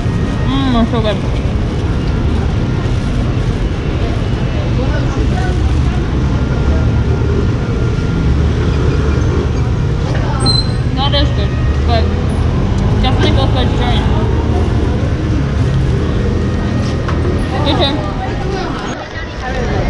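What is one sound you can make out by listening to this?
Busy street traffic rumbles steadily outdoors.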